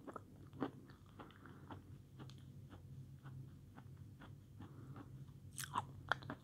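A young woman chews food wetly close to a microphone.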